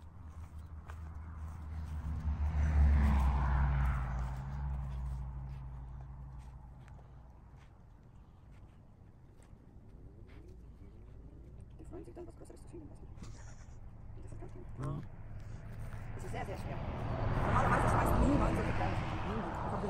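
A puppy sniffs in the grass.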